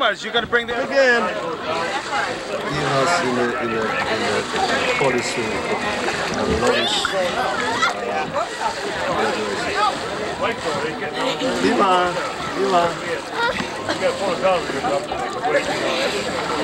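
Water splashes as children play.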